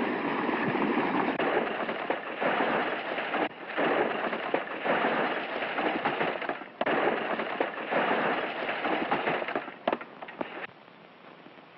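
A wagon crashes and tumbles down a brushy hillside.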